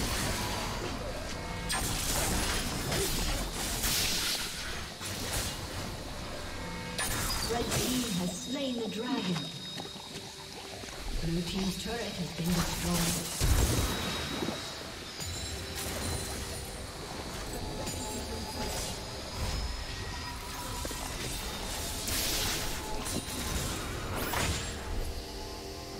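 Magic spells crackle and burst in a fast fight.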